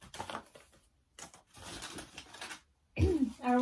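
Paper rustles as a young woman unwraps a gift.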